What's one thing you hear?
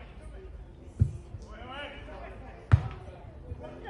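A football is kicked with a thump.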